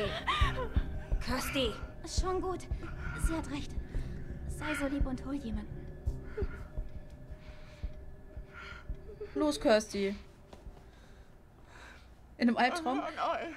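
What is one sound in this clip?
A young woman speaks in a strained, pleading voice.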